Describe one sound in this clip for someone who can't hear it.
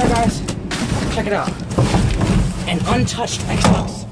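Cardboard boxes scrape and thump as they are shifted.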